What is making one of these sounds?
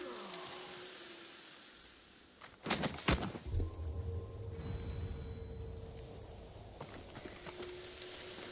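Wind rustles through tall grass.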